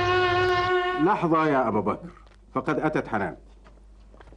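A man speaks into a telephone.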